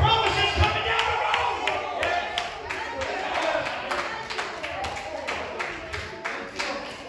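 A man preaches loudly and with fervour through a microphone in an echoing hall.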